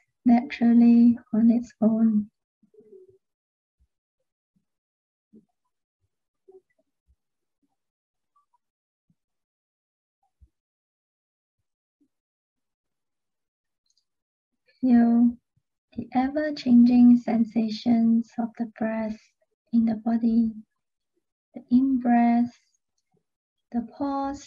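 A young woman speaks calmly and close to a microphone, with long pauses.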